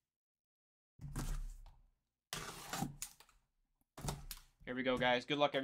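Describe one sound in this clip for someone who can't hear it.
Cardboard scrapes and rustles as a box is handled up close.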